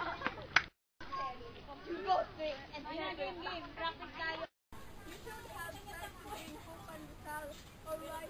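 Young women talk with animation.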